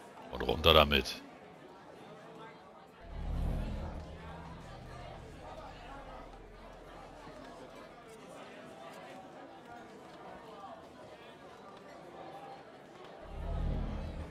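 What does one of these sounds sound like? A man gulps down a drink from a bottle.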